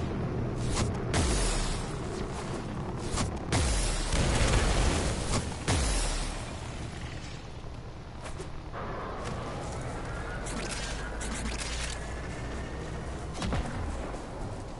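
Loud booms and blasts of game gunfire go off.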